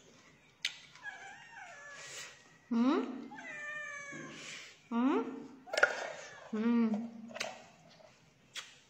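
A woman moans and hums loudly while eating, close by.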